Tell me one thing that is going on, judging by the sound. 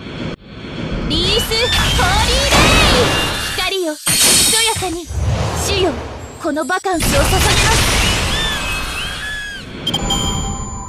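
Bright magical chimes ring out with each attack.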